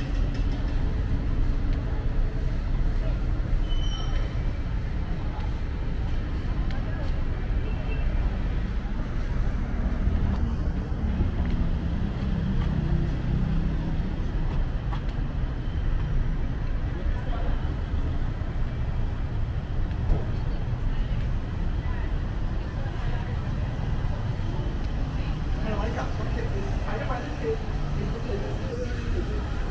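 Street traffic hums steadily outdoors.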